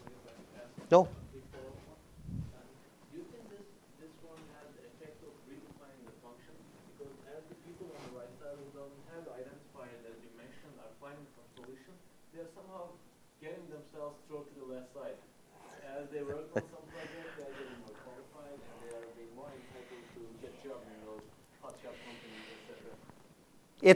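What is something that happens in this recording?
A middle-aged man speaks calmly through a clip-on microphone.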